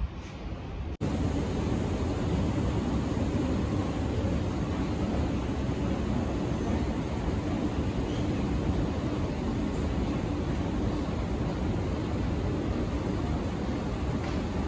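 An escalator hums steadily as it runs.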